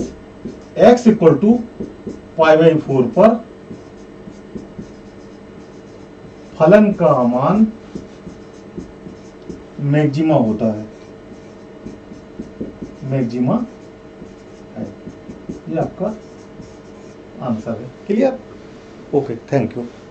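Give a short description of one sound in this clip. A man explains calmly through a microphone, in short phrases with pauses.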